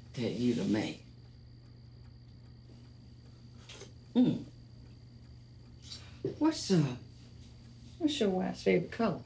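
A middle-aged woman speaks with feeling, close by.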